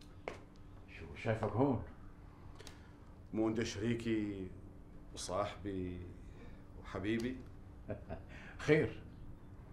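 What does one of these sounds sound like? A middle-aged man speaks with animation.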